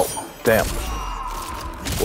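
Ice magic crackles and bursts.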